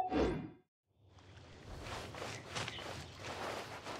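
Quick footsteps patter on a dirt path.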